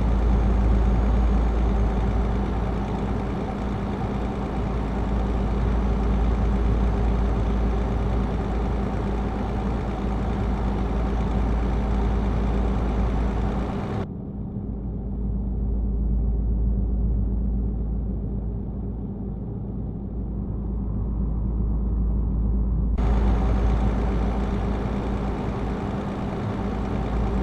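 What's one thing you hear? Tyres hum on an asphalt road.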